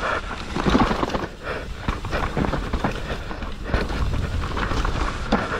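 Bike tyres rumble and crunch over dirt and dry leaves.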